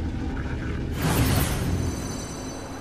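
A bright burst of energy whooshes.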